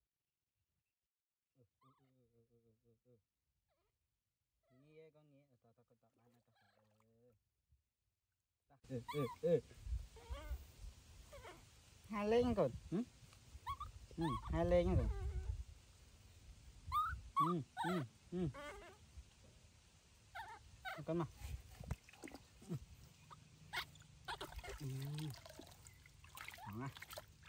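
Water splashes and sloshes gently.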